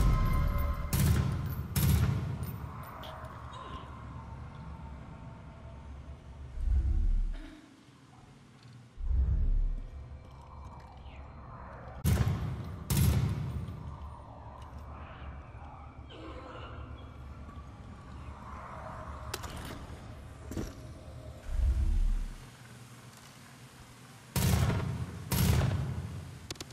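A scoped rifle fires muffled shots underwater.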